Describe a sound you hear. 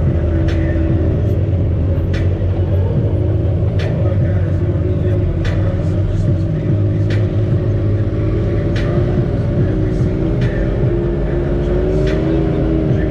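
Loose parts of an off-road vehicle rattle and knock over bumps.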